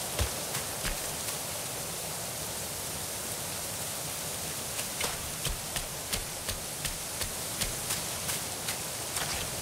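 Footsteps tread on stone steps at a steady walking pace.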